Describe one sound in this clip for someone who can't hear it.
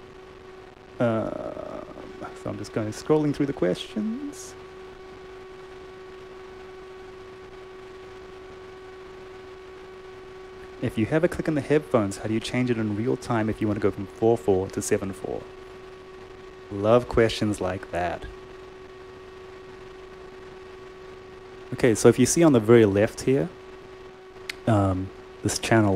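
A man speaks calmly and casually into a close microphone, with pauses.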